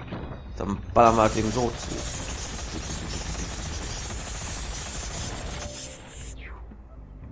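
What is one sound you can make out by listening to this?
A cannon fires with loud, roaring blasts.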